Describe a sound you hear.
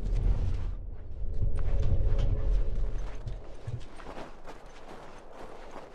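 Quick footsteps run over hard ground and snow.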